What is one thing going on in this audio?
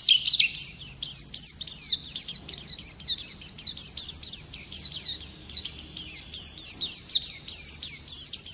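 A small bird sings a rapid, high, twittering song close by.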